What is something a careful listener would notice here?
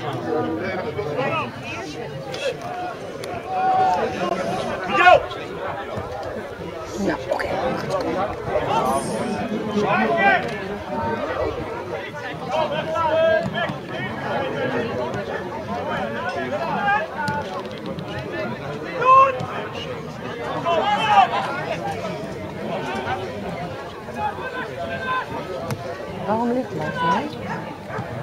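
Young men shout and call to each other across an open pitch outdoors.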